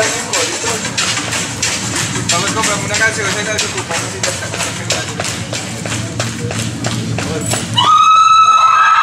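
Dancers stamp their feet in a quick, steady rhythm.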